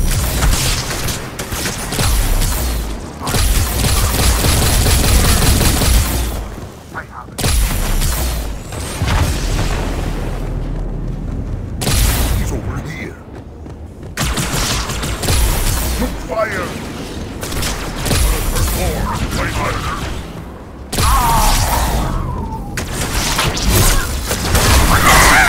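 A heavy gun fires rapid bursts of shots.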